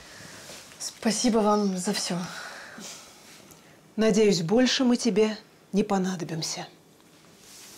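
A woman speaks firmly nearby.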